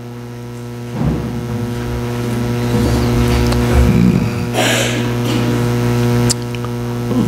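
An elderly man speaks calmly through a microphone in a large echoing hall.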